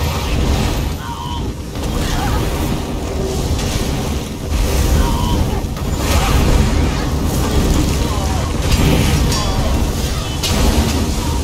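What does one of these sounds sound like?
Fire blasts roar and crackle.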